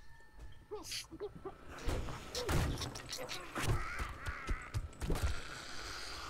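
A wooden club bangs against a door and the wood splinters.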